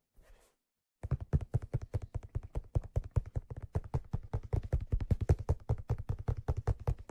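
Fingertips tap softly and rapidly on a padded leather surface close to a microphone.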